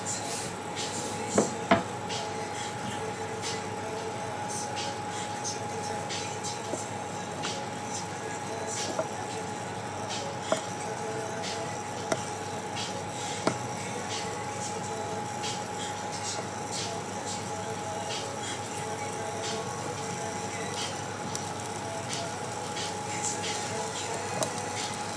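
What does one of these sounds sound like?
Butter sizzles and pops in a hot pan.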